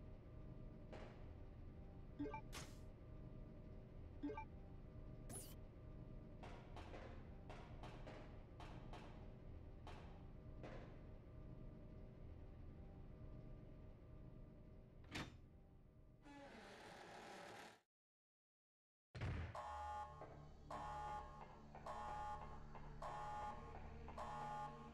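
Footsteps clank on a metal walkway.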